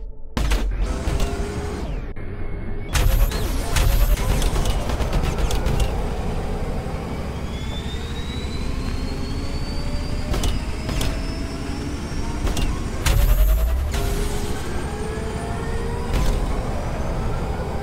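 A motorbike engine roars and whines, rising in pitch as it speeds up.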